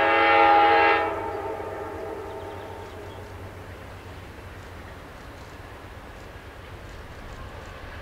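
A train engine rumbles as it rolls past.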